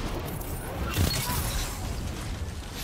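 A rifle fires a sharp, booming shot.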